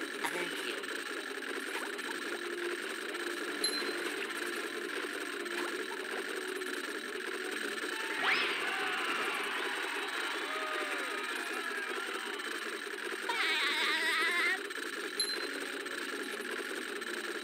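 Steady game music plays throughout.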